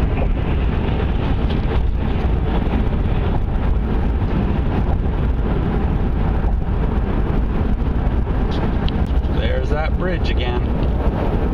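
Tyres roar steadily on a road as a car drives at speed.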